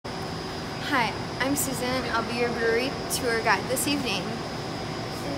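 A teenage girl speaks calmly close by.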